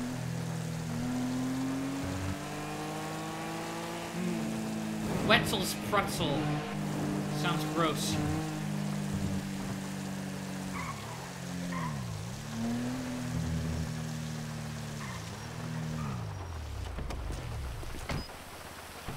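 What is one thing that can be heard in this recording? A car engine hums and revs, dropping in pitch as the car slows.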